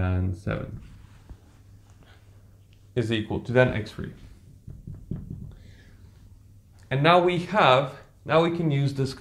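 A young man speaks calmly and close by, pausing now and then.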